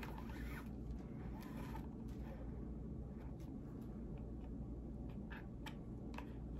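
Waxed thread rasps softly as it is pulled through leather.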